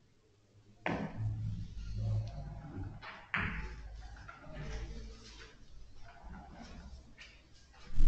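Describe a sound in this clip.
A billiard ball rolls and thuds against the table cushions.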